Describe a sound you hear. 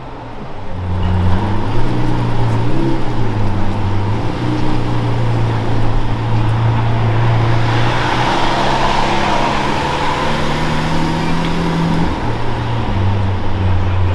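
A sports car engine rumbles deeply at low speed close by, with occasional revs.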